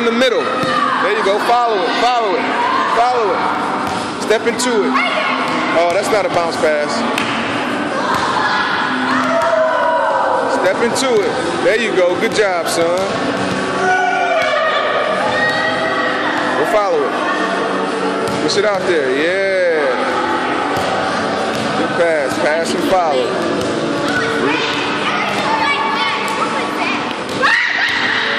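Young children shout and chatter with excitement in a large echoing hall.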